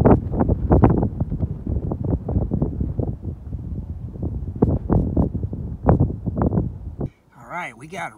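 Wind gusts and rumbles against a microphone outdoors.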